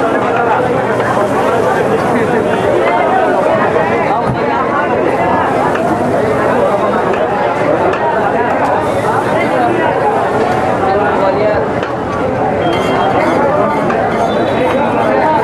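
A crowd of people chatters loudly all around.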